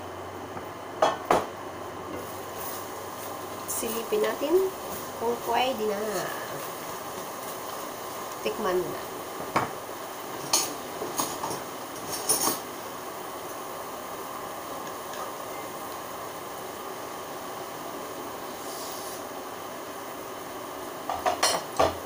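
A metal pot lid clanks against a pan.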